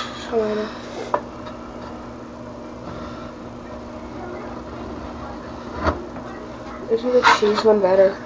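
A knife slices slowly through a block of soap.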